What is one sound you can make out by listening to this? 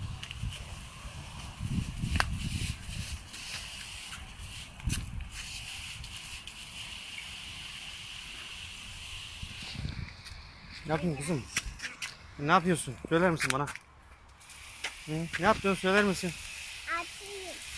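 Water sprays softly from a hose nozzle onto plants.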